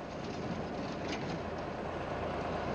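Tyres crunch over loose dirt as a jeep pulls away.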